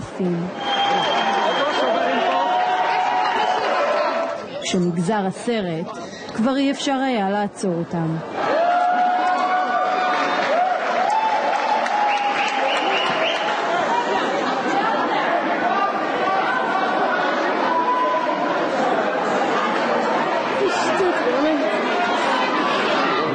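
A large crowd shouts and cheers loudly in an echoing hall.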